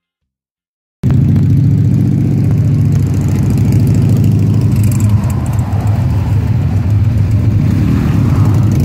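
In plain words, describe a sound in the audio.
A motorcycle engine idles close by with a deep, steady rumble.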